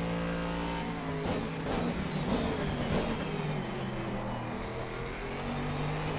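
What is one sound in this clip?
A racing car engine drops in pitch and pops as the car brakes hard.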